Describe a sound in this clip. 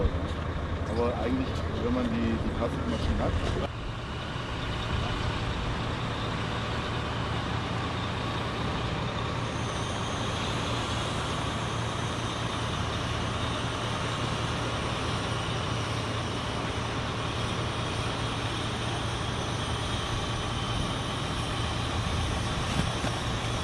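A crane's diesel engine rumbles steadily.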